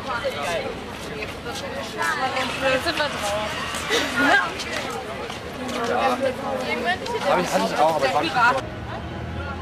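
A group of young people chatter and talk nearby outdoors.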